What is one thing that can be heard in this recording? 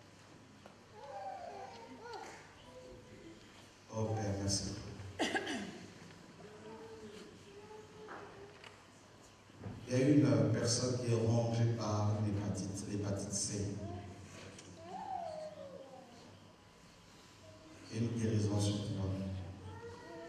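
A man speaks with animation into a microphone over loudspeakers in an echoing hall.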